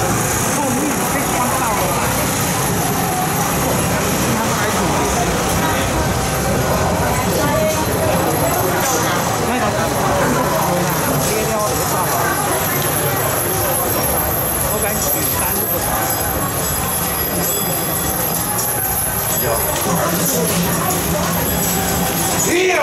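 A crowd of people chatters along a street outdoors.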